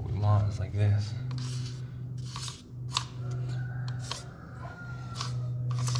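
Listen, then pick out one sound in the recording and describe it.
A pencil scratches lines on a wall.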